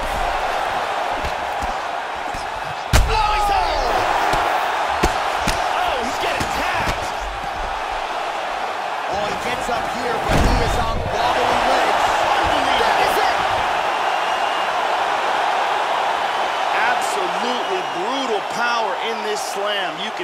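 A crowd cheers and roars steadily.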